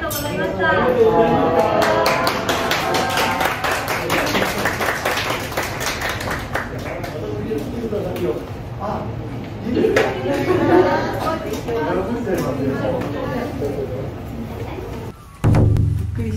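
A group of people sings together.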